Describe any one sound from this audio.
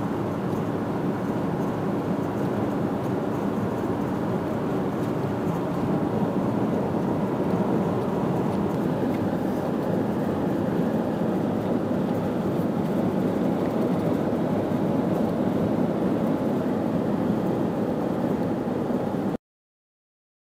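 A car engine and tyres rumble steadily from inside a moving vehicle.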